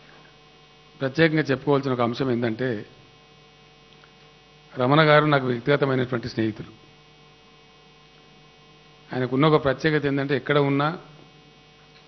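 A man speaks into a microphone over loudspeakers in short, measured phrases with pauses.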